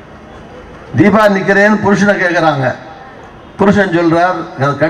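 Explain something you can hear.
A man speaks forcefully into a microphone over loudspeakers outdoors.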